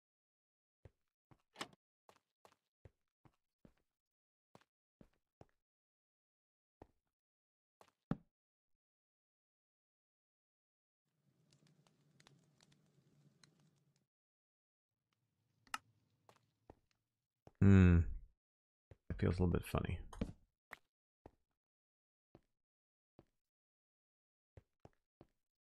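Footsteps tap lightly on a stone floor.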